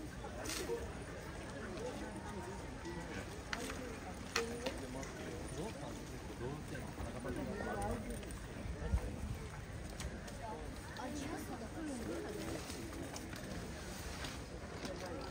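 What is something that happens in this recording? Several adults chatter nearby in a lively outdoor crowd.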